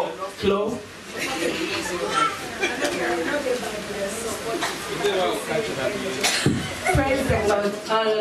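A woman speaks into a microphone with animation, amplified through a loudspeaker in an echoing hall.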